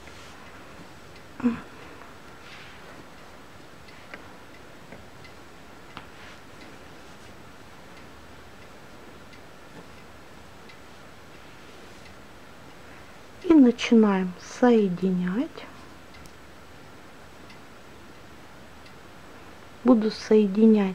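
Yarn squares rustle softly as hands handle them.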